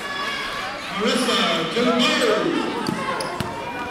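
Young women call out loudly in a large echoing gym.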